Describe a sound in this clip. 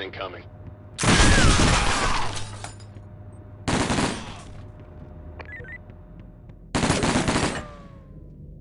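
Guns fire loud rapid bursts.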